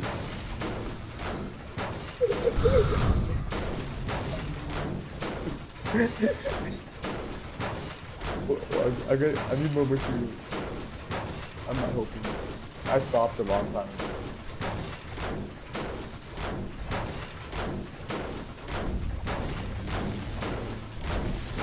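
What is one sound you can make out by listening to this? A pickaxe strikes metal with repeated clanging blows.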